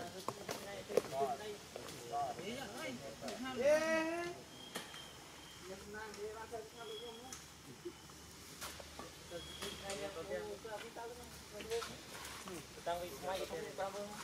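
A paper juice carton crinkles and taps in a monkey's hands.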